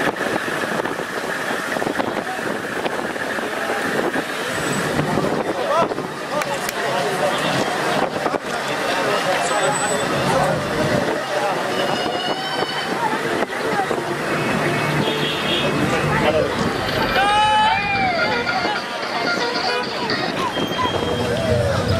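A crowd of men talk and call out all around, close by.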